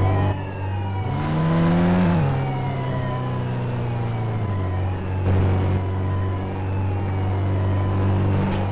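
A car engine revs up and drives off.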